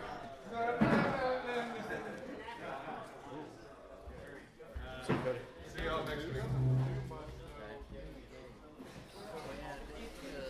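Plastic game pieces tap softly on a table.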